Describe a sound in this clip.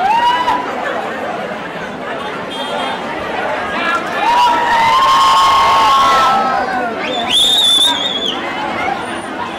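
A large crowd of young people screams and cheers loudly.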